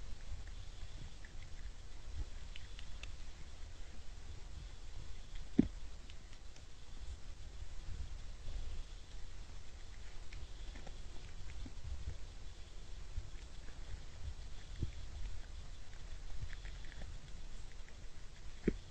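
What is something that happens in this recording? A deer crunches and nibbles at feed on the ground.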